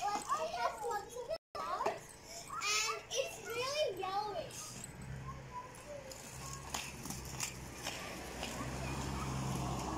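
Scooter wheels rattle on pavement.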